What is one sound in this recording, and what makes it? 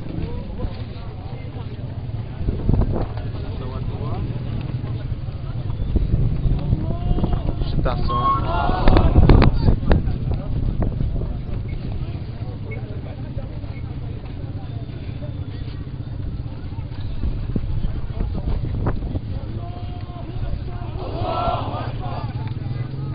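A large crowd of men murmurs and calls out outdoors.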